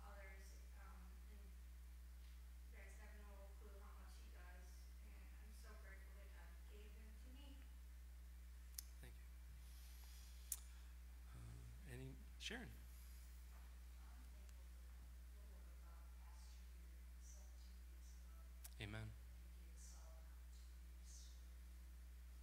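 A middle-aged man speaks calmly through a microphone in a large room.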